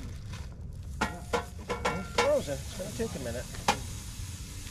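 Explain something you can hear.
A metal lid clanks onto a grill.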